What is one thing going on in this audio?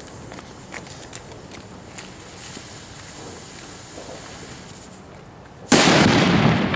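A firework fuse hisses steadily.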